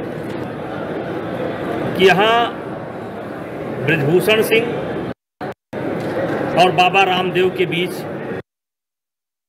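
A middle-aged man speaks calmly into nearby microphones.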